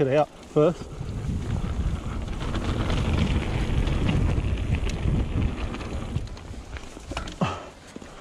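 A bicycle's tyres roll and rattle over a rough dirt trail.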